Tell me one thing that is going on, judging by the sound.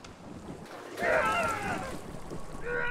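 Water bursts up with a loud, warbling gurgle.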